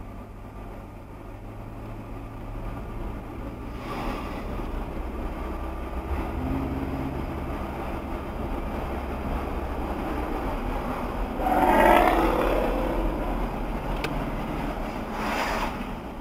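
Tyres rumble on the road surface.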